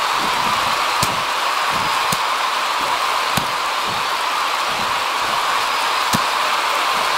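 Punches thud against a wrestler's body.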